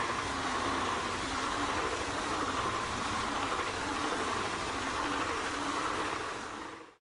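A high-speed train rushes past close by with a loud, steady roar.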